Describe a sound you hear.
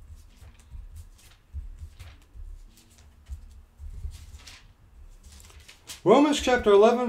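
Hands rustle and click softly, close by.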